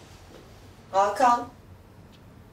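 A woman says a few words, close by.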